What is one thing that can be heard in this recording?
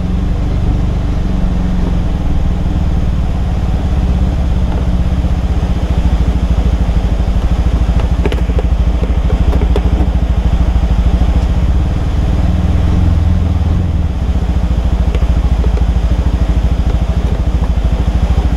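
Light rain patters on a car's windshield.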